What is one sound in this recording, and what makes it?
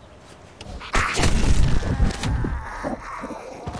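Heavy blows thud and squelch against a body.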